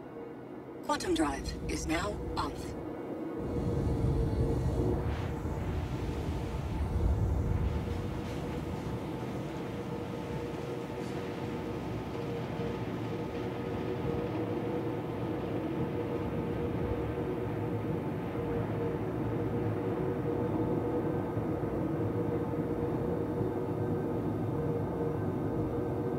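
A spacecraft's engines hum steadily.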